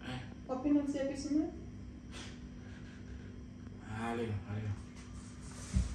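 A young woman speaks nearby in a casual tone.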